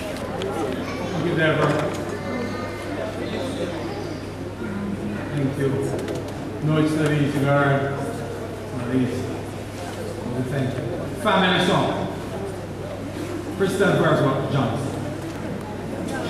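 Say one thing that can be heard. An elderly man speaks calmly into a microphone over loudspeakers in a large echoing hall.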